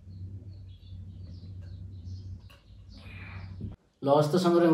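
A young man gulps water from a glass.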